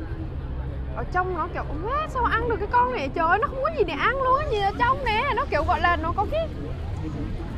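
A young woman talks animatedly close by.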